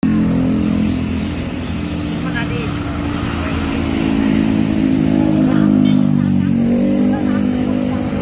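A scooter engine idles and hums steadily close by.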